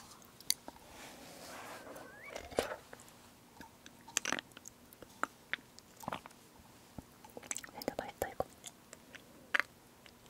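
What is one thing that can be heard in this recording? A young woman gulps a drink close to a microphone.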